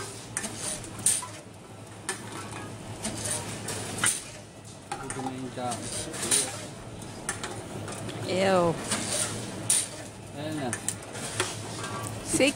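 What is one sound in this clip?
A bottle rattles as it is fed into a recycling machine.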